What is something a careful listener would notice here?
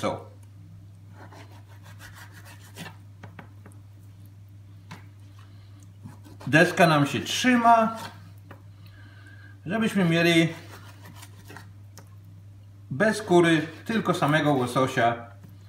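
A knife cuts through raw fish.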